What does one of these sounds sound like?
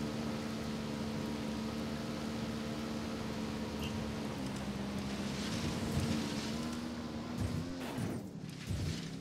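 Tyres crunch over snow and rock.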